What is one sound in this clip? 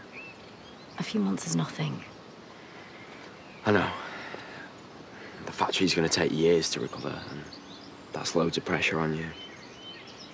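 A young woman talks close by, calmly and earnestly.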